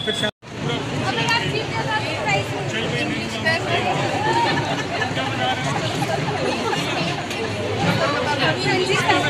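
A crowd of men and women chatter close by, outdoors.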